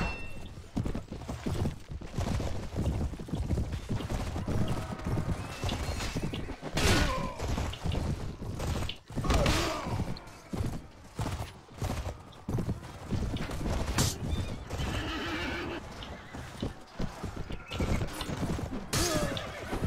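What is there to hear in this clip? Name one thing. Horses gallop over the ground.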